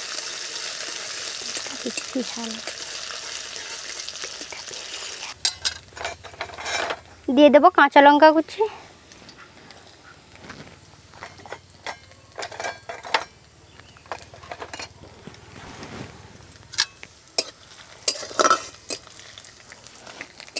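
A metal spatula scrapes and stirs in a pan.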